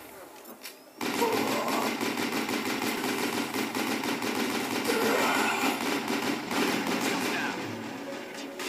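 Rapid gunfire rattles loudly in a video game.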